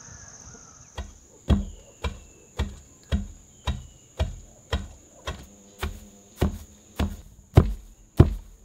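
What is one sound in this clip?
A pestle pounds dry spice in a stone mortar with steady, heavy thuds.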